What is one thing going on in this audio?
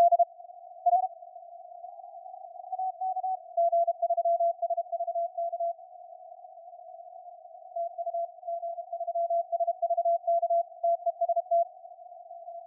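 Morse code beeps from a radio in short and long steady tones.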